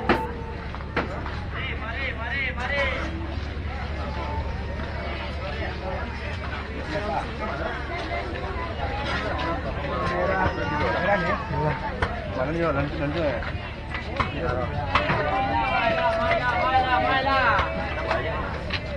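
Men and women talk nearby with animation.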